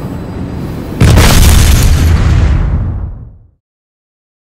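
A loud explosion booms and rumbles away.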